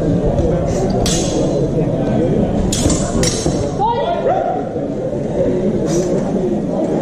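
Wooden practice swords clack together in quick exchanges.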